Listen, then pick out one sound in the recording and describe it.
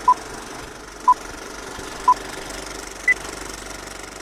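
Short beeps sound once a second in a countdown, the last one higher in pitch.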